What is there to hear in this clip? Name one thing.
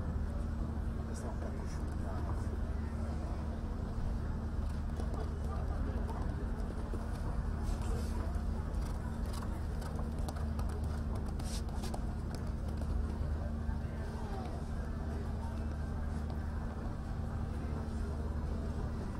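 Hooves thud on soft sand as a horse canters.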